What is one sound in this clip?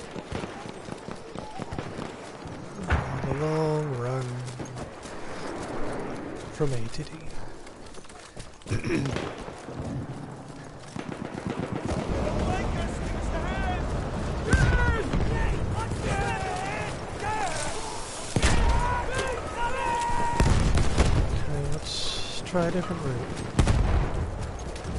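Footsteps rustle through undergrowth as a soldier runs.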